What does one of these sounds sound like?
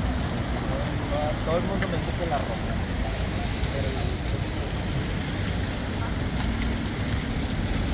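Cars drive by on a street.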